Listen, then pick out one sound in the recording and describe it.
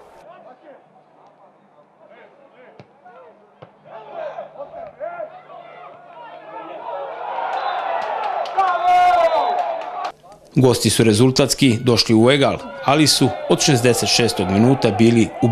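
A crowd cheers in a stadium outdoors.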